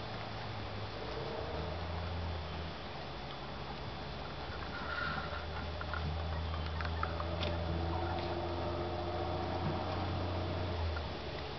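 Hens peck and scratch at dry litter on the ground.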